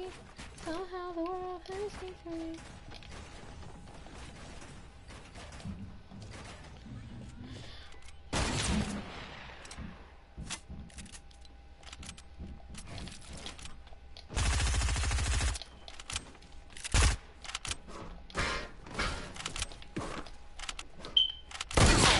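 Game building pieces snap into place with quick clicks and thuds.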